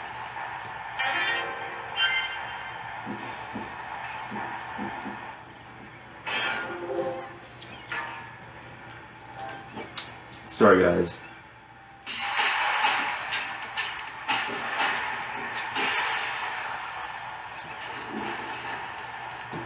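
Video game sound effects clash and whoosh from a television speaker.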